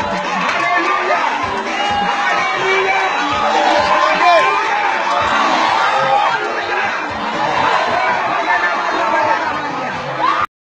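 Feet stamp on the ground as a crowd dances.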